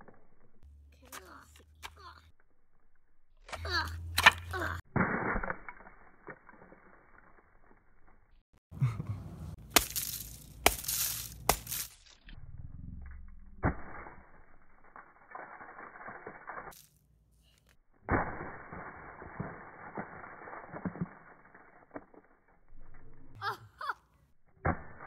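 A hammer smashes brittle gingerbread with sharp, crunching blows.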